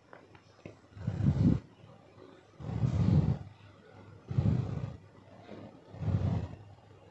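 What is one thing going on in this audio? A spatula scrapes and stirs inside a metal pot.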